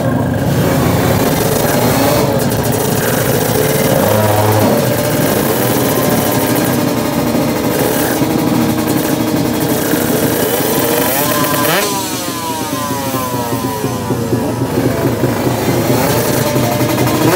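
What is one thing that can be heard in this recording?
Other racing motorcycle engines rev and whine nearby.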